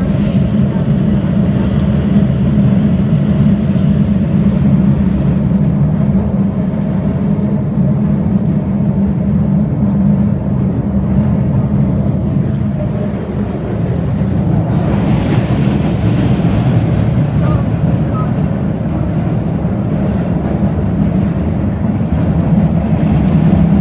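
A subway train rumbles loudly and steadily along the tracks.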